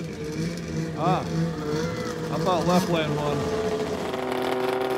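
A racing car engine roars and revs as it speeds past outdoors.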